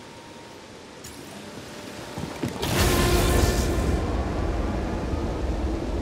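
Footsteps land and clank on a metal floor.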